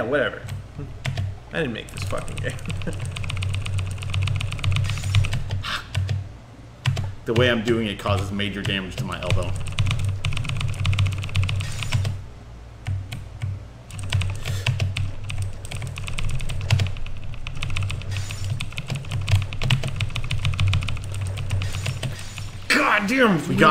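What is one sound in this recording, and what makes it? Chiptune game music plays with a steady low pulsing beat.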